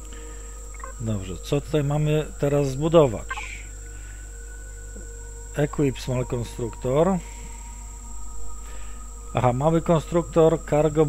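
A man talks calmly into a headset microphone, close by.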